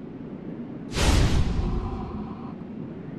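A sudden deep chime rings out.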